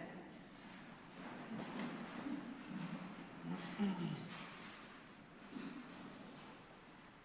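A man speaks quietly through a microphone in a large echoing hall.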